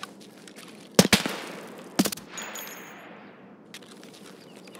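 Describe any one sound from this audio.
A rifle fires two loud shots that echo and fade.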